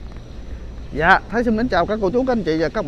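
A man speaks animatedly outdoors, close by.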